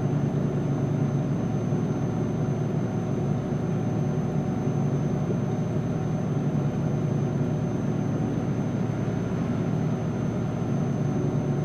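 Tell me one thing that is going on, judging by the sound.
A truck engine drones steadily at highway speed.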